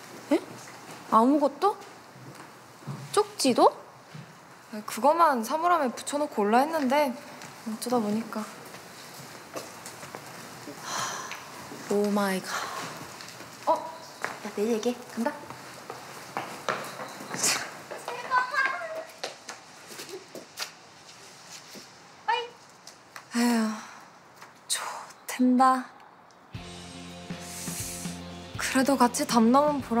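Young women talk with each other, close by.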